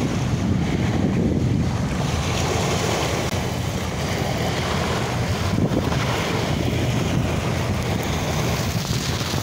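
Strong wind blusters outdoors.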